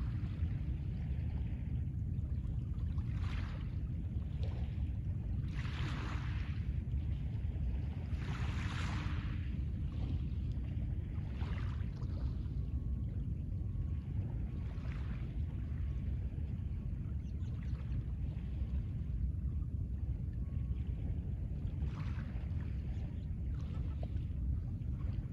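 Small waves wash gently onto a pebble shore.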